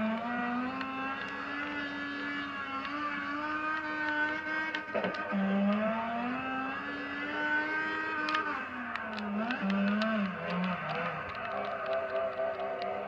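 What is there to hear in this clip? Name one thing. A racing car engine revs high and shifts gears.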